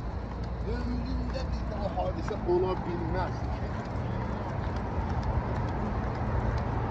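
A dog's claws tap on pavement as it walks.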